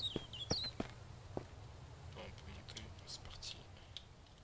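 Footsteps clank on metal ladder rungs.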